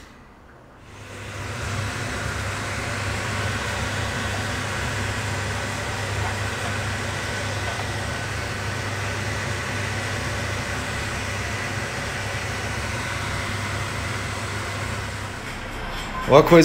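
Food sizzles steadily in a frying pan.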